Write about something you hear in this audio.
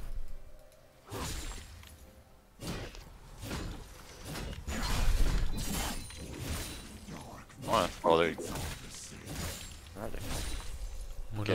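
Spells crackle and blast in a game battle.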